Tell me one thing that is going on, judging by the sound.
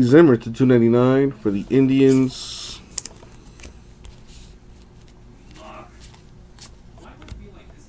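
Trading cards rustle and slide against each other in hands.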